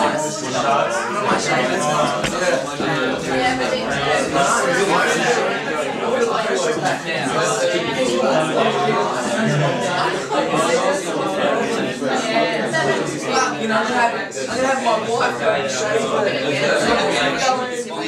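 Many people talk at once indoors.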